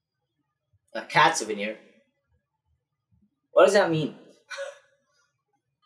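A young woman speaks briefly and cheerfully, close to a microphone.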